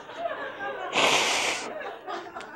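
An elderly man blows his nose into a tissue.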